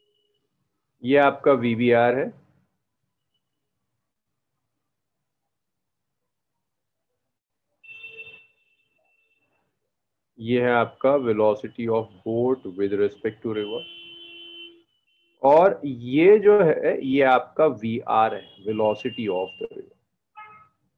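A young man speaks calmly over an online call, with pauses.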